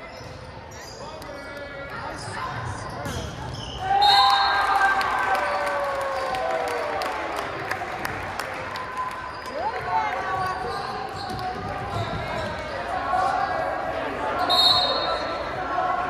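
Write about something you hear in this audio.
A volleyball thumps off players' hands and arms.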